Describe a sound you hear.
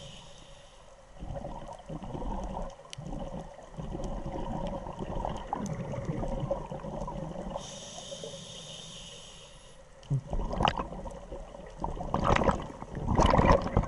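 Air bubbles from a scuba diver gurgle and rumble underwater.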